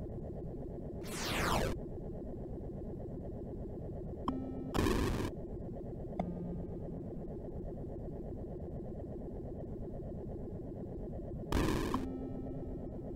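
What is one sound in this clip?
Short bursts of crackling electronic noise sound from a game's explosions.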